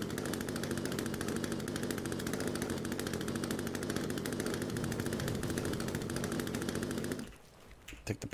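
A chainsaw engine buzzes steadily.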